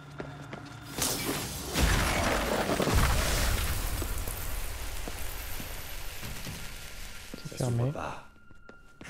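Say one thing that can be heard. An electric blast crackles and roars.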